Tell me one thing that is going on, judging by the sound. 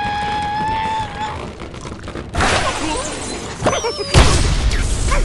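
A cartoon bird squawks as it is flung from a slingshot.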